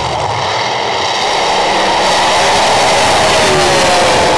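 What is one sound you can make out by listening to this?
Drag racing engines roar loudly as the cars launch down the track.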